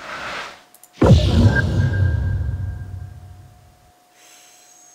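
A magical whoosh swells and rumbles, then fades.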